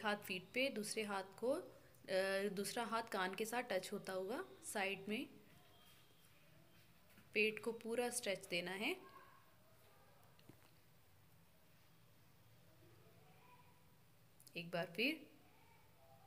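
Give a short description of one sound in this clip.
A young woman speaks calmly and clearly, giving instructions.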